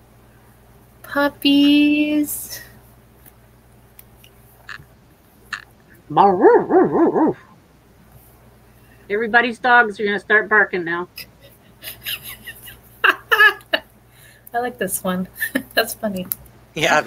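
Women talk with animation over an online call.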